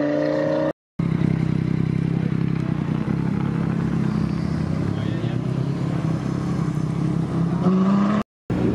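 A sports car engine rumbles deeply at low speed close by.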